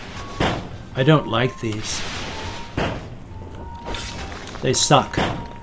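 An older man talks calmly into a close microphone.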